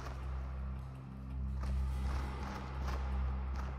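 A heavy stone block grinds as it is pushed across stone.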